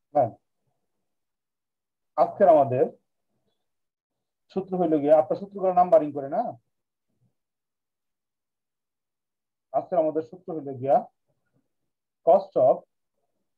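A man speaks calmly in short phrases through an online call.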